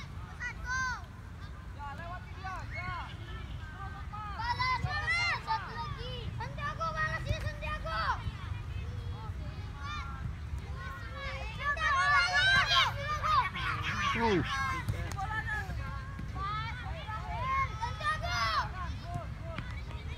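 Young children shout and call out across an open field.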